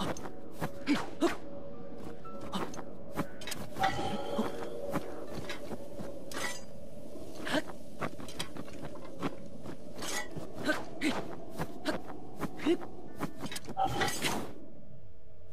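A sword swishes through the air again and again.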